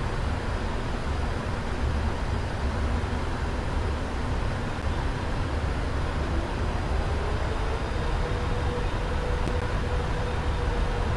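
A jet airliner's engines roar steadily in the cockpit.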